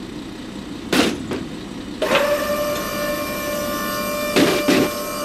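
A car thumps and clanks onto a metal ramp.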